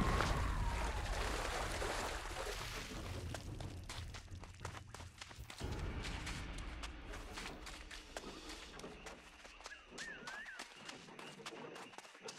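Footsteps thud quickly on soft sand.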